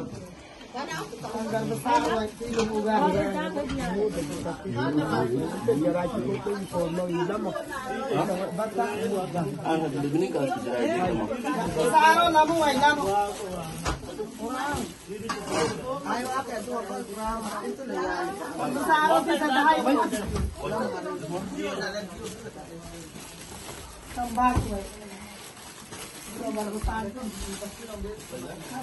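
Several women talk and chatter close by.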